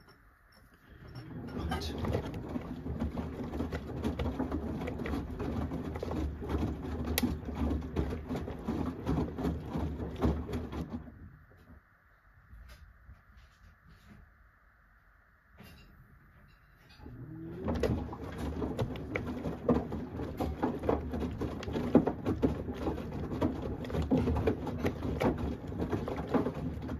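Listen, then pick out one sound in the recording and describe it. A washing machine drum tumbles wet laundry with a rumbling, sloshing churn.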